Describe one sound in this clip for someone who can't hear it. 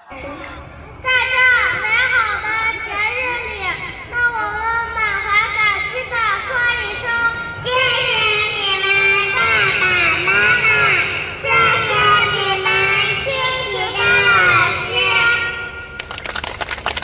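A young girl sings into a microphone.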